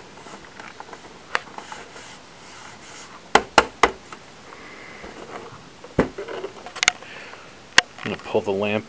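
Hands knock and tap against a plastic casing.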